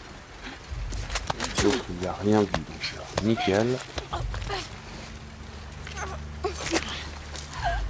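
A body thuds and scuffles in a struggle.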